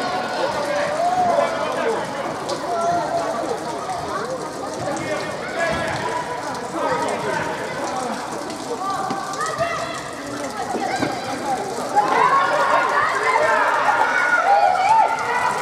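Young players shout and call out to each other across a large echoing indoor hall.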